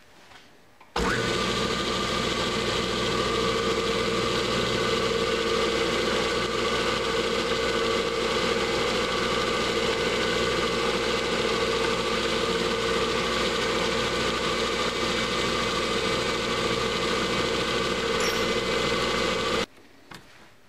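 A lathe motor hums steadily while running.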